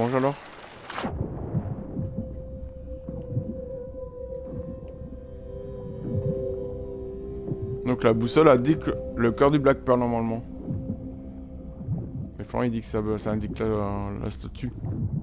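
Water rumbles dull and muffled underwater.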